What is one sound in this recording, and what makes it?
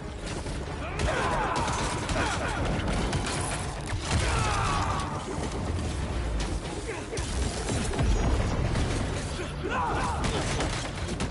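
A creature screeches and snarls.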